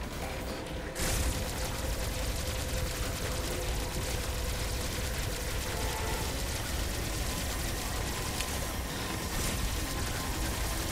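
A video game beam weapon fires with a steady buzzing hum.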